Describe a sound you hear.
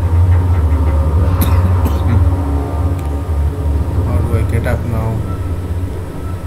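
A low machine hum drones steadily.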